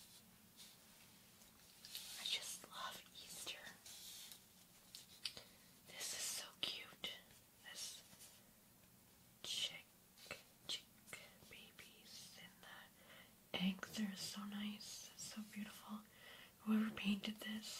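Fingernails scratch across a stiff card close to a binaural microphone.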